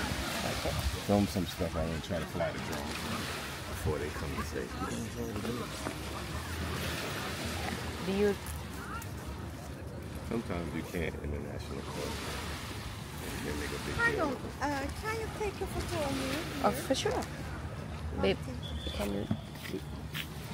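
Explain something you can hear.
Voices of a crowd of people chatter nearby and far off, outdoors.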